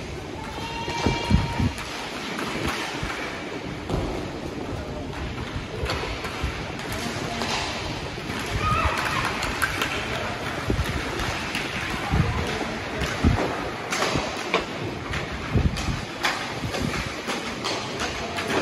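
Hockey sticks clack and scrape on a hard floor, echoing in a large hall.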